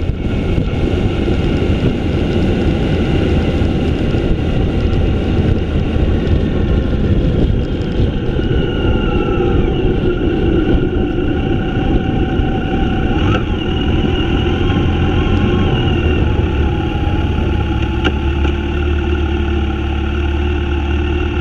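A motorcycle engine hums steadily nearby.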